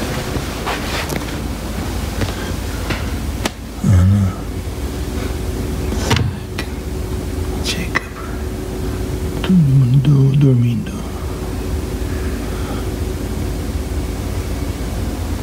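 Children breathe softly in their sleep.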